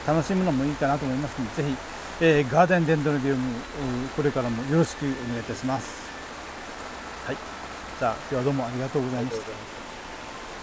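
A middle-aged man speaks calmly and close by, pausing now and then.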